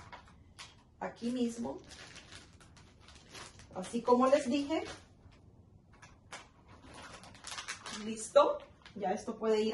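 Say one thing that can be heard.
Plastic packaging crinkles in a woman's hands.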